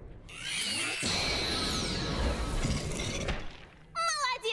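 A bright magical whoosh rings out and shimmers.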